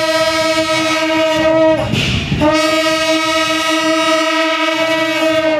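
Long brass horns blare a loud, steady drone outdoors, with a brief break in the middle.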